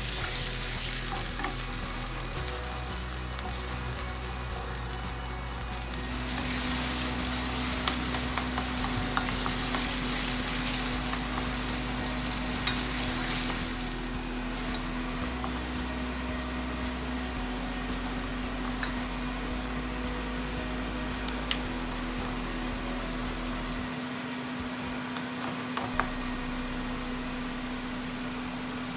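Diced potatoes and carrots sizzle in hot oil in a pan.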